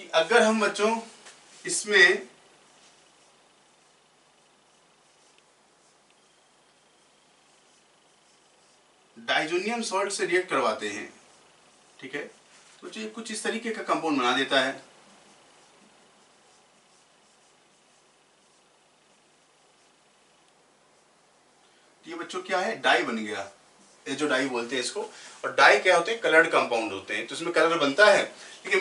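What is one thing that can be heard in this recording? A man speaks clearly and steadily, close to a microphone, in bursts with pauses.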